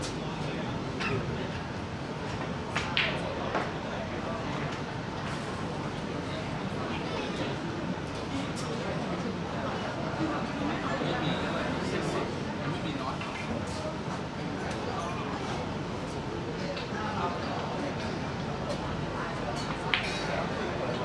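A cue tip strikes a snooker ball with a short click.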